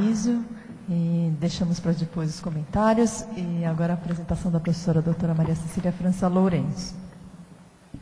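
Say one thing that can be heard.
A woman speaks with animation through a microphone in an echoing hall.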